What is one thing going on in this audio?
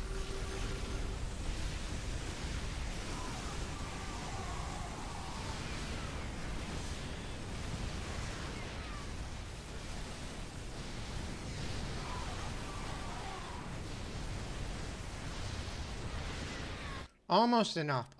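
Laser fire and explosions crackle in a busy battle.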